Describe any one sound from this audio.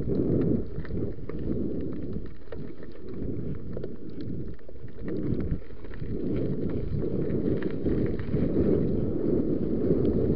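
Bicycle tyres roll and crunch over a gravel trail.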